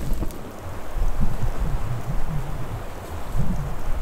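Footsteps crunch in deep snow.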